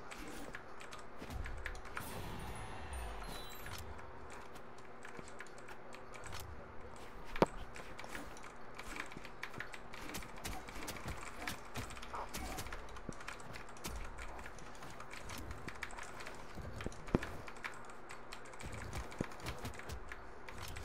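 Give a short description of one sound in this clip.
Sharp hits and whooshes of a fighting game sound in quick bursts.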